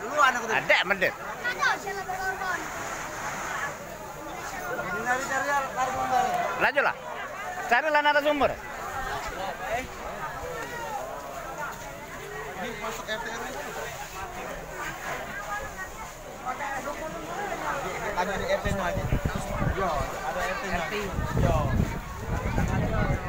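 Several men talk loudly and excitedly nearby.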